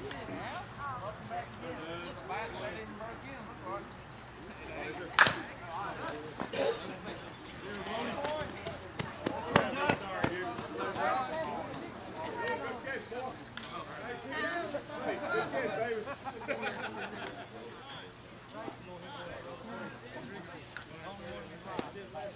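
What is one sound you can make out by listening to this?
Men and women shout and call out across an open ball field.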